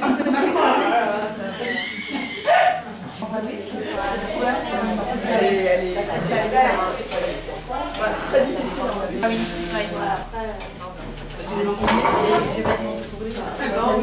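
Several men and women talk and chatter at once nearby.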